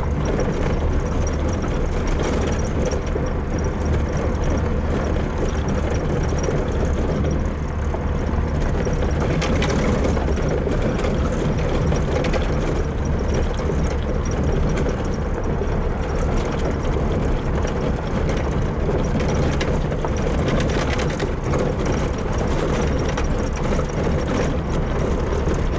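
Tyres crunch and rumble over a bumpy gravel track.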